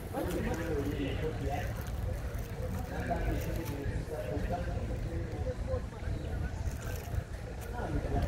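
Young children talk and babble close by.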